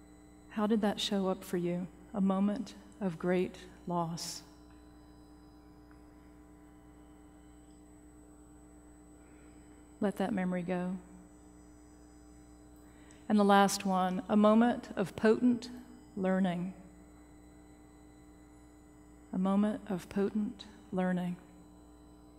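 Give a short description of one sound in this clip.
A middle-aged woman speaks calmly and slowly through a microphone in a large hall, with long pauses.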